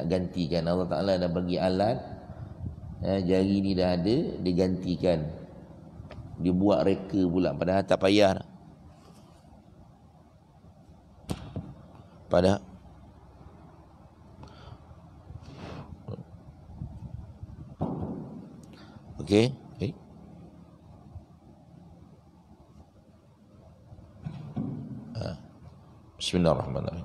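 A middle-aged man speaks with animation into a microphone, with long pauses.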